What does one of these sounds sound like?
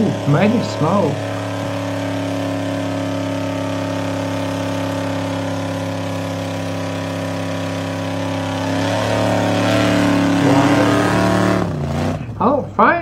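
A car engine roars loudly at high revs.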